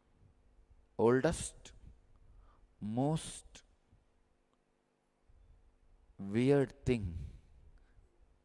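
A man speaks slowly through a microphone in short phrases, with pauses between them.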